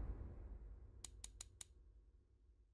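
Menu clicks tick in quick succession.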